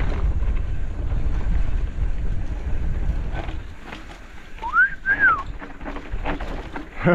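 Mountain bike tyres roll and crunch over a bumpy dirt trail.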